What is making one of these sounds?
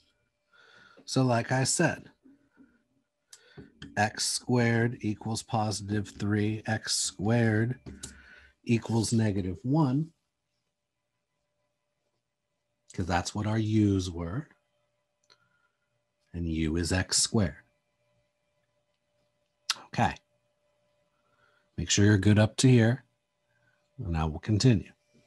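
A man talks calmly into a close microphone, explaining in bursts with pauses.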